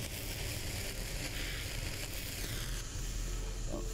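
Electric sparks crackle and hiss.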